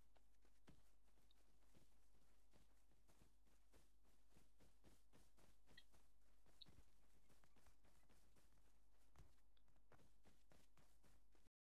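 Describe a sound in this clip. Footsteps swish through tall grass at a steady pace.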